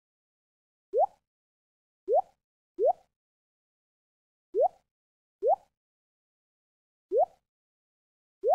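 Short soft pops sound one after another.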